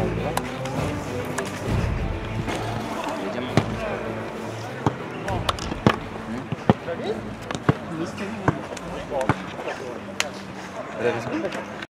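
Men talk and call out to each other outdoors.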